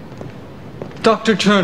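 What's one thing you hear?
A man speaks from across the room.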